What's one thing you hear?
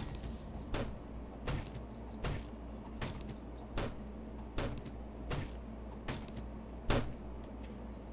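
A club strikes a tree trunk with regular, heavy thuds.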